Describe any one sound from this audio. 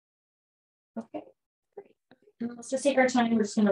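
A woman speaks calmly and clearly into a nearby microphone.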